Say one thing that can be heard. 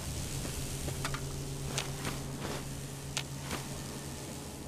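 Footsteps crunch on loose rubble.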